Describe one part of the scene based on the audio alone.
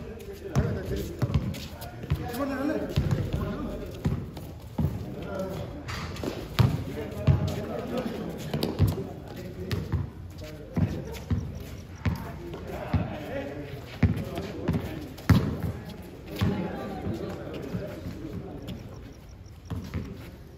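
A basketball bounces on a hard court outdoors.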